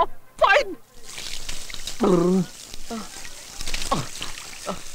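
Water runs from a tap into a basin.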